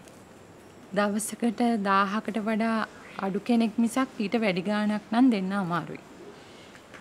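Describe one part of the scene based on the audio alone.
A younger woman speaks calmly and close by.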